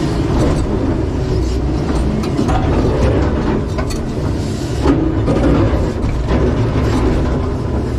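Rocks scrape and clatter in an excavator bucket.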